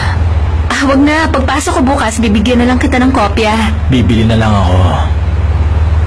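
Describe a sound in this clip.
A young woman speaks softly and laughs nearby.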